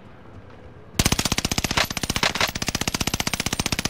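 A rifle fires in a rapid, steady burst.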